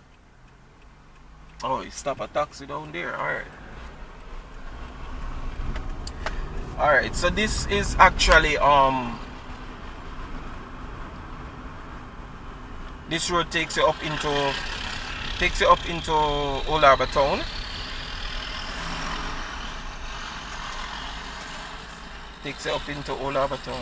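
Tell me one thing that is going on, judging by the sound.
A car engine hums steadily with tyres rolling on the road.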